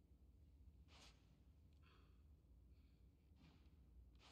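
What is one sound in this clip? Snooker balls knock against each other.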